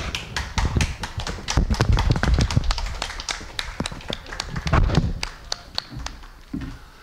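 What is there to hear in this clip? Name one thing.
Hands clap in applause.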